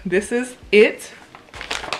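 A paper bag rustles.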